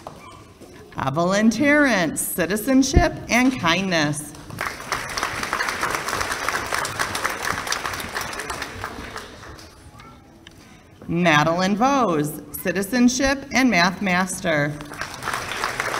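A woman speaks into a microphone over a loudspeaker, announcing in a hall.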